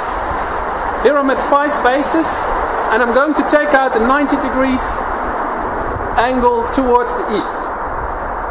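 A man talks calmly at a distance outdoors.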